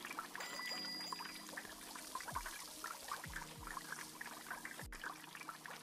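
Oil sizzles and crackles in a deep fryer.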